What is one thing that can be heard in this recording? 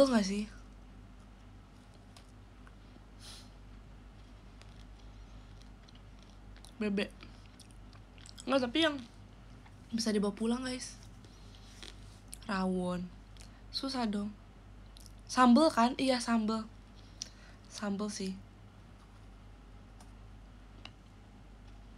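A young woman chews crunchy food.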